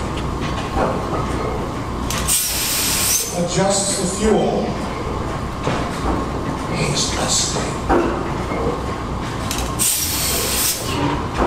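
A large old stationary engine thumps and chuffs steadily in a big echoing shed.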